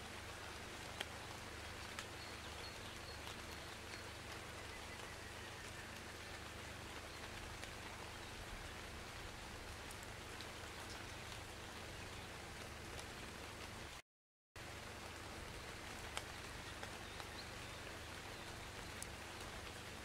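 Soft game interface clicks tick now and then.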